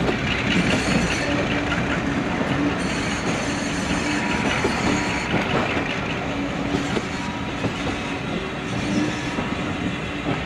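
Train wheels clatter and squeal over rail joints.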